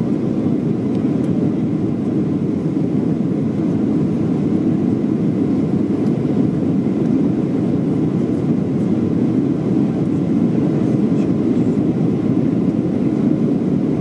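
Jet engines roar steadily inside an airliner cabin.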